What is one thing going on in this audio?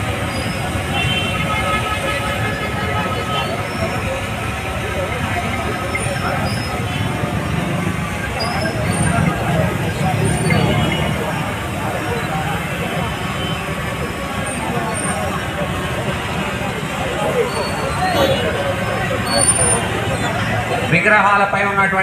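A man speaks with animation into a microphone over loudspeakers.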